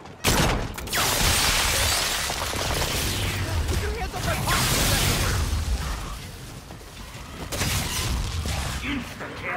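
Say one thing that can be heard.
Gunfire and explosions boom loudly in a video game.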